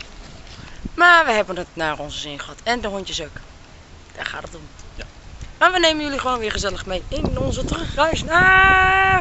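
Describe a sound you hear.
A young woman talks with animation, close to the microphone.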